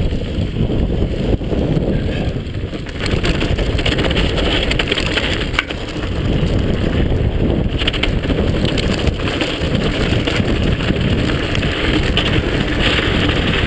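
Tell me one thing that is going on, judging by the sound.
Bicycle tyres crunch and rattle over a rocky trail.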